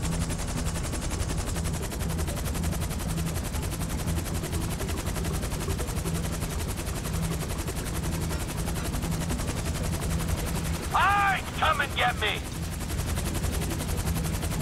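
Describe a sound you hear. A helicopter's rotor thuds steadily close by.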